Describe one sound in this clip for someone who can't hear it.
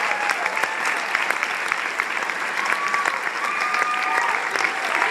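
An audience claps loudly in a large hall.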